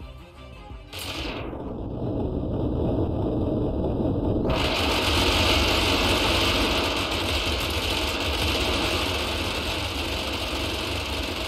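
A rapid-fire cannon fires a long, continuous burst of shots.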